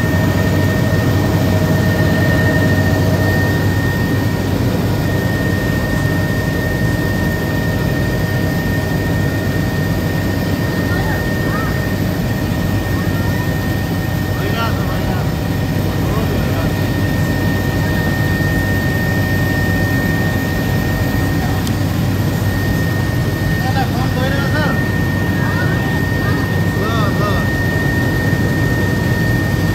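An aircraft engine drones steadily with a low roar throughout.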